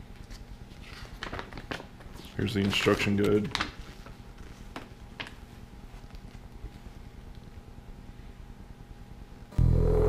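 Paper rustles as a folded sheet is opened.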